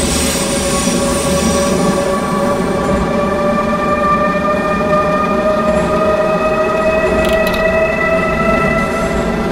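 A train's electric motor whines steadily, slowly rising in pitch.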